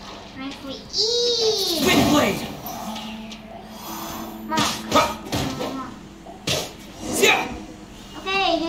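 Magic attacks whoosh and swirl in bursts.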